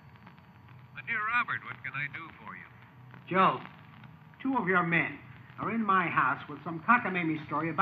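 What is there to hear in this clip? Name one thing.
A man answers in a deep, calm voice nearby.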